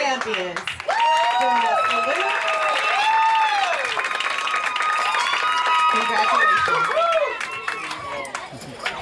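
A crowd of young girls cheers and screams loudly.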